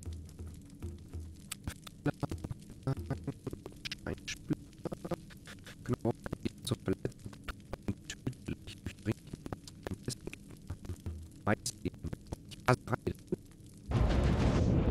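Menu clicks tick in quick succession.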